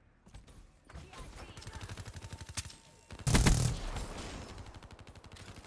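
A heavy machine gun fires rapidly in long bursts.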